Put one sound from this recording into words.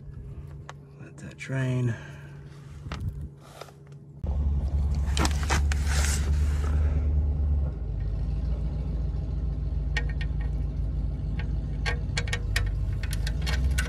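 A metal drain plug clicks and scrapes as it is unscrewed by hand.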